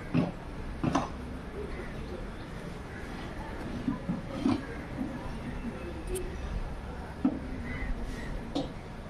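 A metal bar knocks and scrapes against wooden boards and concrete.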